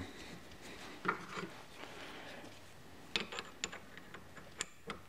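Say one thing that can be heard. A metal drill chuck clicks and rattles as it is turned by hand.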